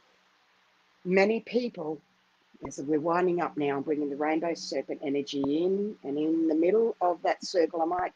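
A middle-aged woman speaks with animation close to a microphone.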